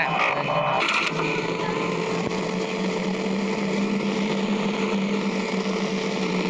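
An electric desk fan whirs with a steady hum.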